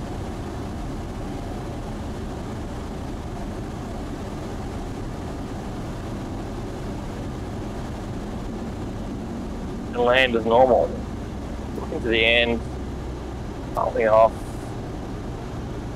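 A small propeller plane's engine drones steadily from close by.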